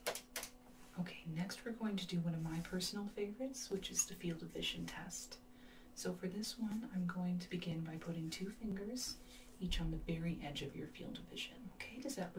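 A young woman speaks softly, close to the microphone.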